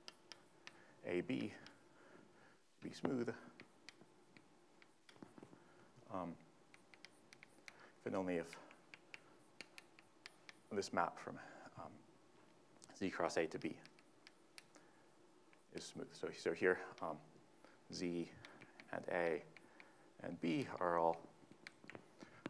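A man speaks calmly in short phrases with pauses, as if lecturing.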